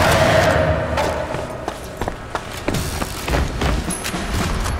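Boots run with quick footsteps on a stone floor.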